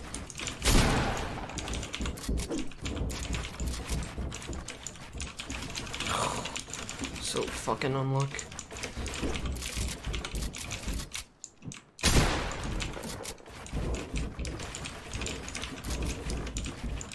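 Wooden building pieces snap into place in quick, clattering bursts.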